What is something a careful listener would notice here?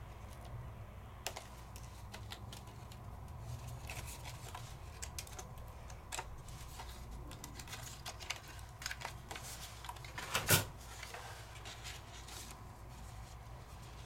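Stiff paper rustles and crinkles softly as hands peel and handle it.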